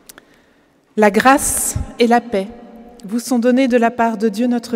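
A woman speaks with animation into a microphone in a large echoing hall.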